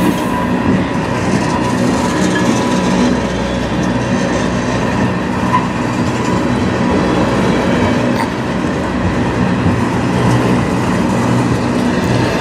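Steel wheels squeal faintly on the rails.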